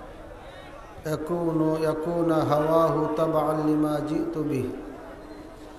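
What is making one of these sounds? A middle-aged man speaks loudly through a microphone and loudspeakers, echoing outdoors.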